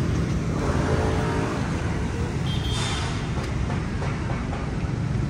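Motorbike engines hum along a street nearby.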